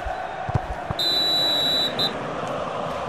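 A referee's whistle blows a long blast.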